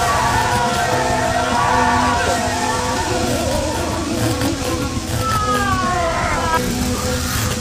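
Electric bolts crackle and zap loudly.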